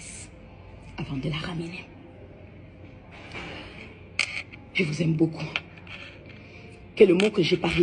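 A middle-aged woman speaks tearfully, close to the microphone.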